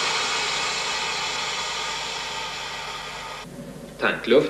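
A power tool whirs steadily.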